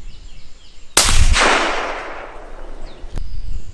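A rifle shot cracks loudly and echoes away.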